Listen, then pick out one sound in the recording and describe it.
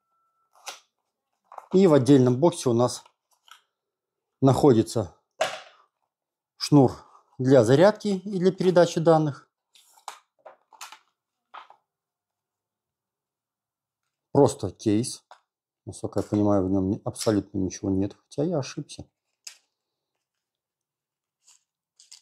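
Cardboard packaging rustles and scrapes as it is handled.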